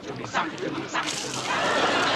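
Water splashes onto a woman.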